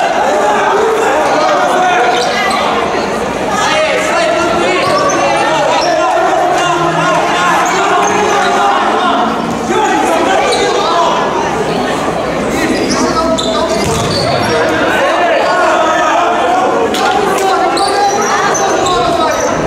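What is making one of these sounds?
A ball thumps against the floor and walls.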